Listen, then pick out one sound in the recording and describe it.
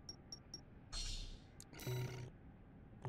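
A soft whoosh sounds as a game menu opens.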